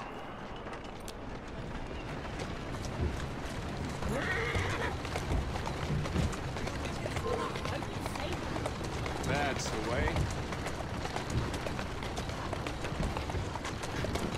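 Carriage wheels rattle over cobblestones.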